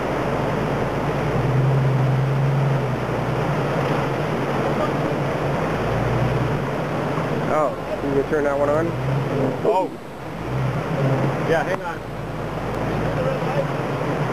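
An off-road vehicle's engine rumbles low as it crawls through the water.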